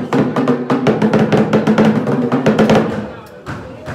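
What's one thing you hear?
Drums beat loudly.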